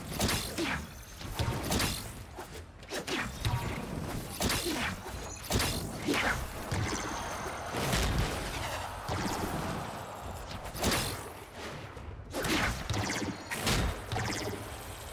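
Blades whoosh and clash in quick bursts.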